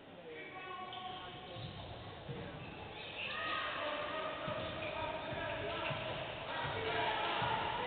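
Sneakers squeak on the court floor as players run.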